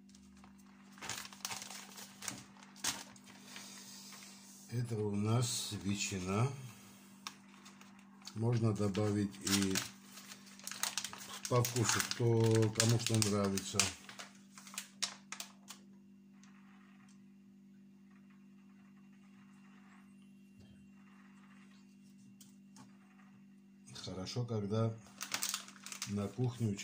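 A plastic package crinkles and rustles close by.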